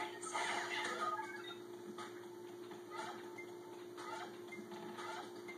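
Upbeat electronic game music plays from a television speaker.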